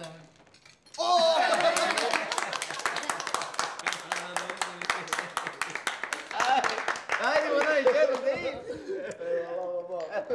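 Several people clap their hands quickly and steadily.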